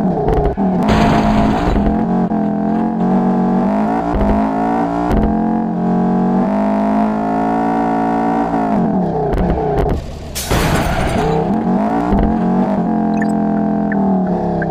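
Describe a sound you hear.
A racing car engine roars loudly, rising and falling in pitch as the car speeds up and slows down.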